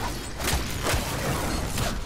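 An electric blast crackles and bursts.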